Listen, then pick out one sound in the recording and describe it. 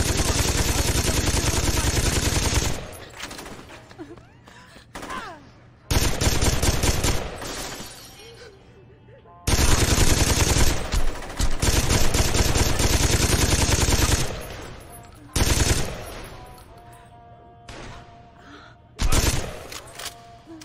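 A machine gun fires rapid bursts of loud shots that echo around an indoor hall.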